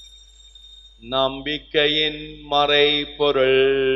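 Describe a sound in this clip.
A man chants in a sung voice through a microphone, echoing in a large hall.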